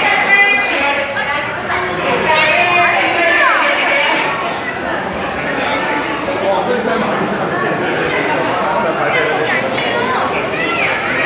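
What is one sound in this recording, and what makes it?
A crowd of young men and women chatters and shrieks excitedly close by.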